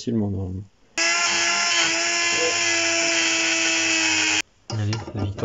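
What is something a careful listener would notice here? A grinder whines loudly as it grinds metal.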